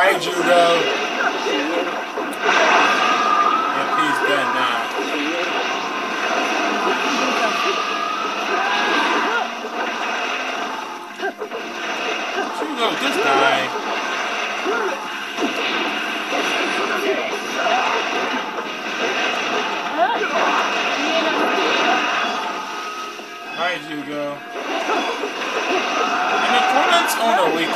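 Fast whooshing and fluttering effects sweep through a fighting game battle.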